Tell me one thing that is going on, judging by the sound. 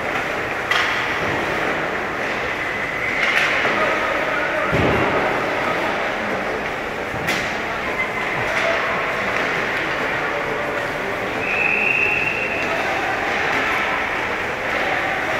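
Skates scrape and glide on ice in a large echoing rink.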